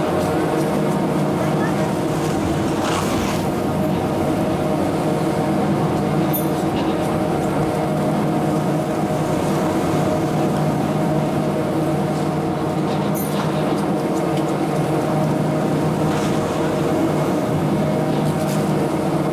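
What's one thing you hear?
A chairlift machine hums steadily.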